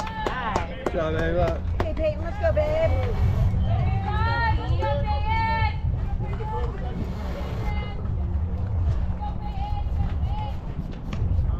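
Young women cheer and chant loudly nearby, outdoors.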